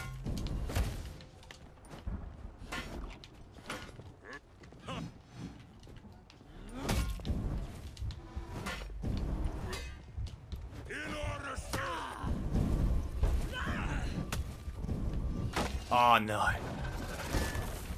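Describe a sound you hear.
Swords clash and ring in a fierce fight.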